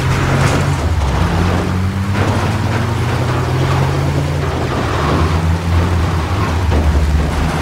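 A car engine hums steadily as a vehicle drives.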